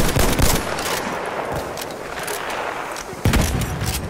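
A rifle bolt clicks as it is worked and reloaded.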